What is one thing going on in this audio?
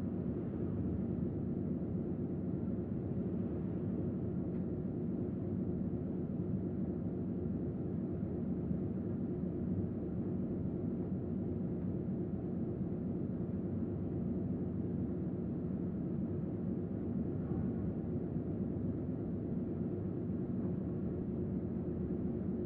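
A ship's engines rumble steadily.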